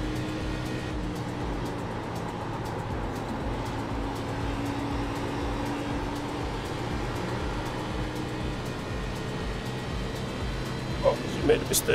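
A race car engine drones steadily at high speed.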